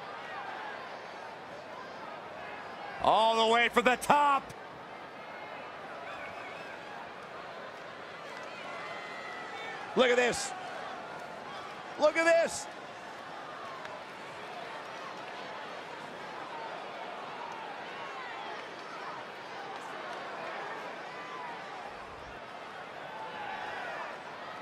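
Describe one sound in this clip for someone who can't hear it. A large arena crowd murmurs and cheers.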